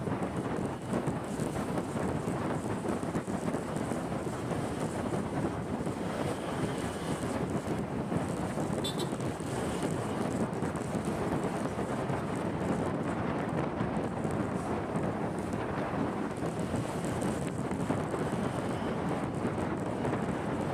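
Wind rushes loudly past a motorbike rider outdoors.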